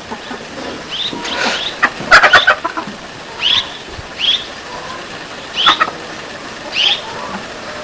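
A mouse squeaks in short, high chirps.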